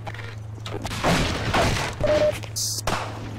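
A wooden crate smashes and splinters under a crowbar blow.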